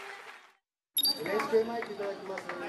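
Young women chatter and talk excitedly nearby.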